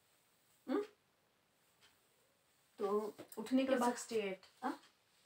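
A woman speaks nearby in short bursts.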